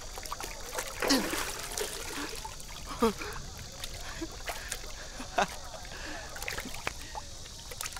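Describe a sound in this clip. Young men laugh together.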